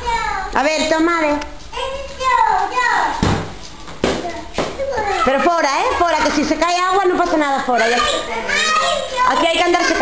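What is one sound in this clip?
Young children babble and chatter.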